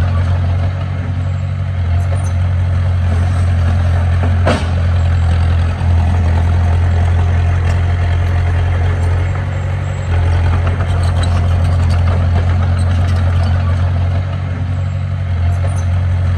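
A bulldozer blade pushes loose dirt.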